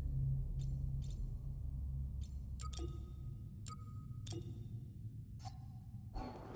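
Soft menu clicks tick as options are switched.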